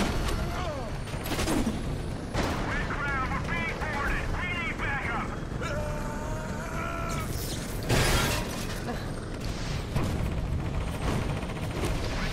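A helicopter's rotor whirs and thumps overhead.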